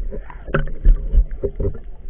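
Air bubbles gurgle underwater.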